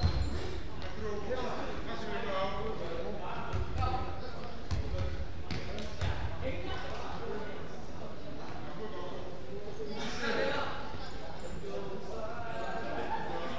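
Young players call out to each other in a large echoing hall.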